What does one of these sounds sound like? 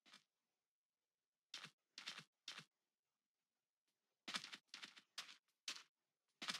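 Footsteps crunch on snow in quick, uneven bursts.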